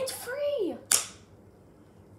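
A young girl claps her hands once.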